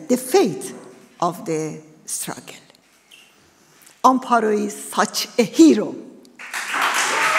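A woman speaks with emotion through a microphone.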